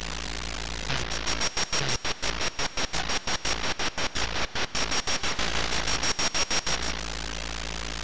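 A fast electronic rattle chatters like a helicopter's rotor.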